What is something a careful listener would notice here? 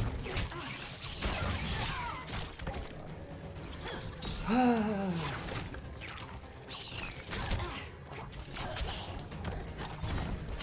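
Punches and kicks land with sharp thuds and whooshes.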